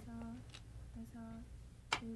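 Go stones click in a wooden bowl.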